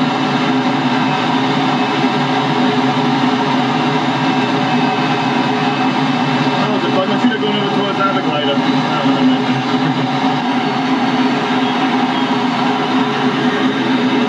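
Air rushes steadily past a glider's canopy in flight.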